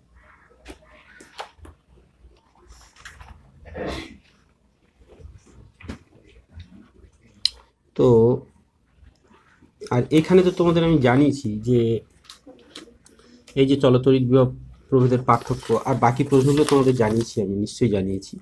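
Paper pages rustle and flap as a book's pages are turned by hand.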